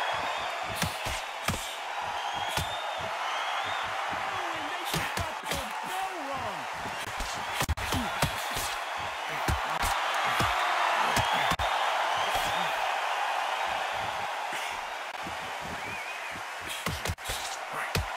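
Boxing gloves thud against a body in sharp punches.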